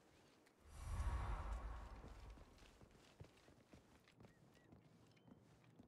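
Footsteps tap on stone at a steady walking pace.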